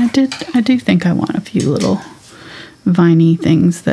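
A paintbrush dabs and swirls paint on a palette.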